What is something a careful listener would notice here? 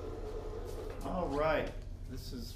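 A middle-aged man speaks close by, calmly and clearly.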